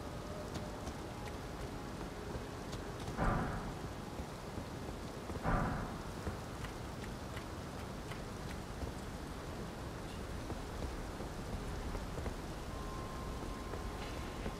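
Footsteps tap on stone as a figure walks.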